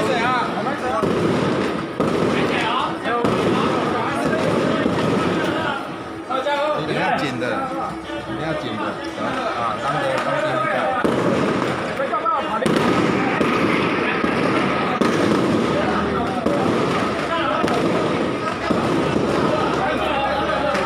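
A crowd of men and women chatters loudly outdoors close by.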